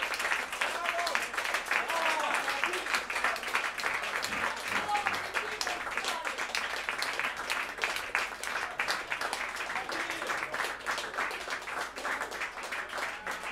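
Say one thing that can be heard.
An audience claps and applauds throughout.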